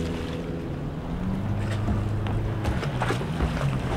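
A man's footsteps thud on a wooden dock.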